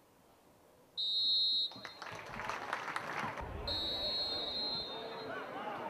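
A referee's whistle blows loud and long, twice.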